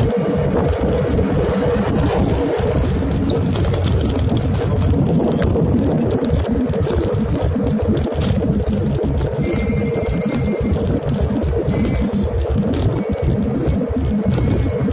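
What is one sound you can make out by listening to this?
Wind rushes loudly and roughly outdoors.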